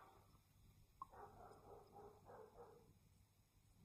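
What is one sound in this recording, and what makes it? A man gulps water close by.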